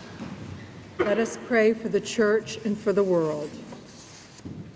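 A woman reads aloud through a microphone.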